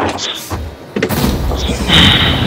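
A loud explosion bursts.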